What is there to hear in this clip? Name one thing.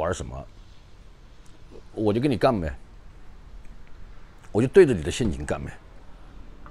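A middle-aged man speaks calmly and close to a clip-on microphone.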